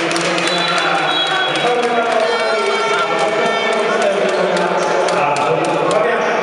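A crowd of spectators chants and cheers loudly in a large echoing hall.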